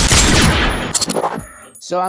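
A gun's magazine is reloaded with metallic clicks.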